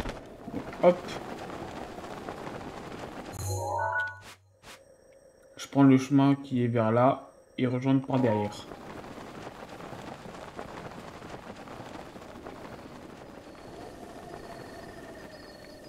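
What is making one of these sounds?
Wind rushes steadily past.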